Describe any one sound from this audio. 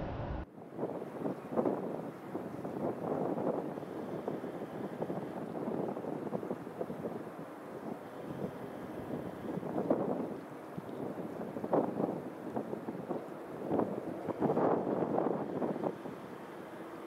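Wind gusts loudly across the microphone outdoors.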